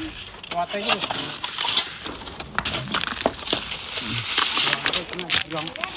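Shovels scrape and dig into sand.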